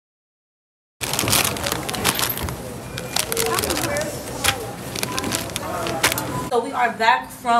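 A shopping cart rattles as it rolls.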